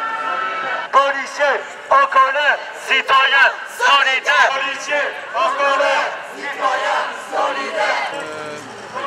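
A crowd of protesters chants loudly outdoors.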